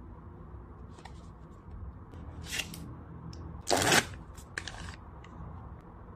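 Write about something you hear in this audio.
Cardboard packaging rustles and crinkles in someone's hands.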